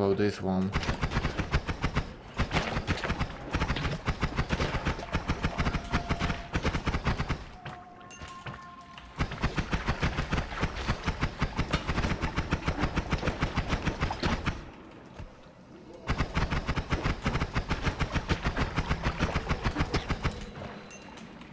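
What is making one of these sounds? Rapid magic shots fire in quick bursts.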